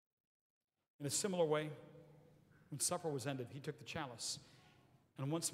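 An elderly man chants through a microphone in a large echoing hall.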